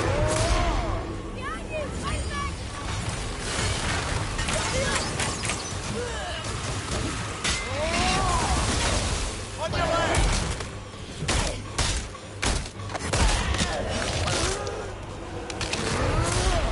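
Weapons clash and strike in a fight, with sharp impacts.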